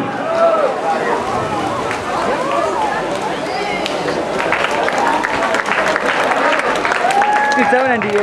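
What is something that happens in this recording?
Swimmers splash through water.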